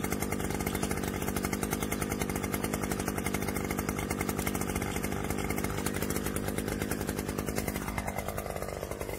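A small petrol engine idles with a steady, rapid chugging.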